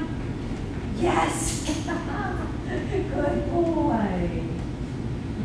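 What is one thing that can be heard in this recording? A woman speaks to a dog in a cheerful, animated voice.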